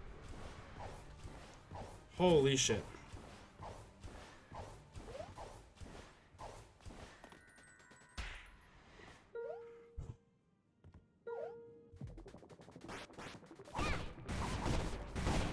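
Quick electronic footsteps patter as a game character runs.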